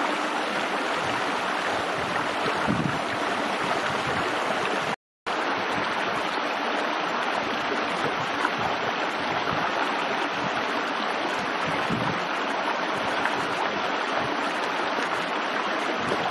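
A shallow stream trickles and gurgles steadily over rocks.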